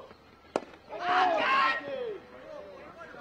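Men on the field shout out loudly.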